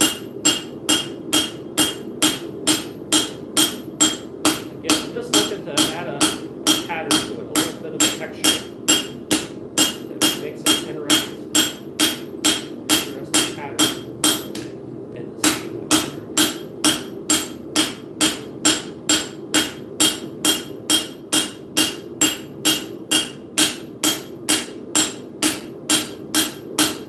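A hammer strikes metal on an anvil in a steady, fast rhythm, ringing sharply with each blow.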